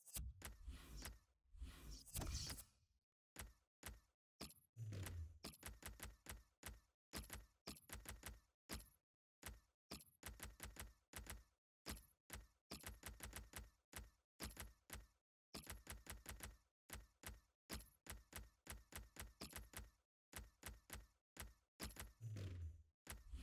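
Short menu clicks tick in quick, uneven bursts.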